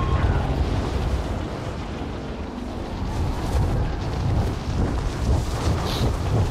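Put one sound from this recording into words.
Wind rushes steadily during a fast freefall.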